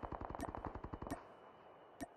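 A rifle fires a rapid burst.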